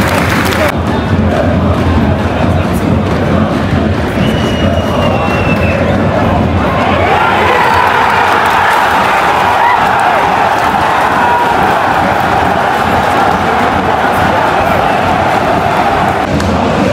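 A large stadium crowd roars loudly outdoors.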